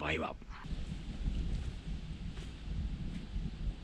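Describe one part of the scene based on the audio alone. Footsteps brush softly through grass.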